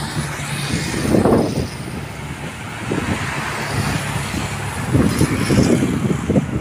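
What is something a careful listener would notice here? Motorbike engines buzz past close by.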